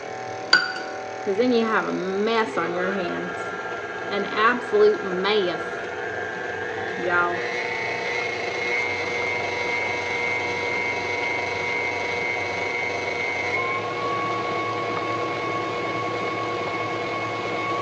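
An electric stand mixer whirs steadily, its hum rising in pitch partway through.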